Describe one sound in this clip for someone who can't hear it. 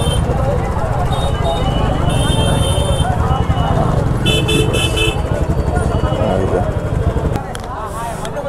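A motorcycle engine idles with a low, steady rumble close by.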